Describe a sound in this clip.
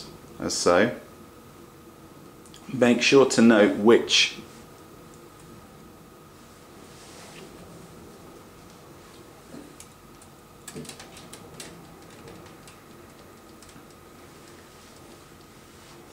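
Thin plastic tubing rubs and clicks softly against metal fittings.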